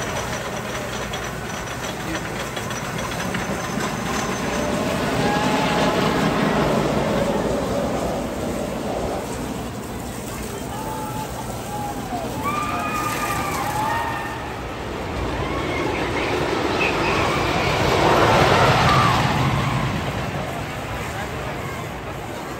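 A wooden roller coaster train rumbles and clatters along its track, swelling as it passes.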